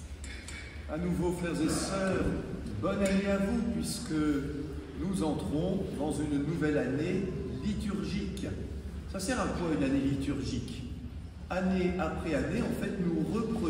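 An elderly man speaks with animation through a microphone in a large echoing space.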